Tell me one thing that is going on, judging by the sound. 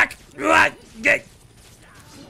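Game fight sounds of heavy blows and grunts ring out.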